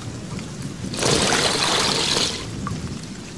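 Water drips and splatters onto the floor.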